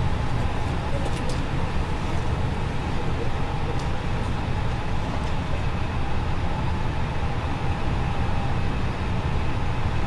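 A steady low hum of aircraft cockpit fans and engines fills the air.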